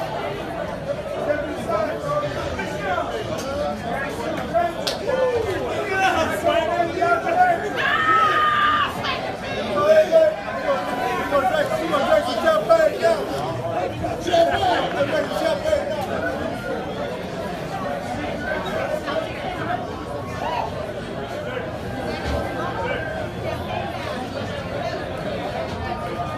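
A crowd of men and women chatter and call out all around.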